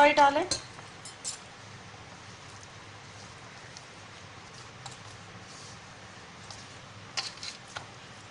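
Bangles clink softly against each other.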